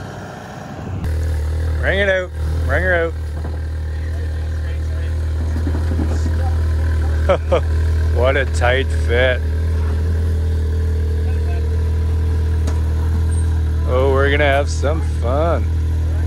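An off-road vehicle's engine idles steadily.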